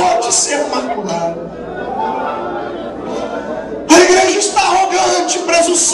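A man sings with emotion through a microphone in a large echoing hall.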